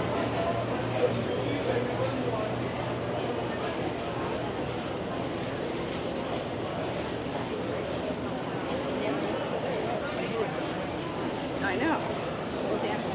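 A crowd of people chatters steadily in a busy indoor hall.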